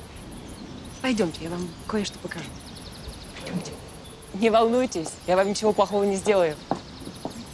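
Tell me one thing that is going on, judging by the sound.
A woman speaks softly and coaxingly.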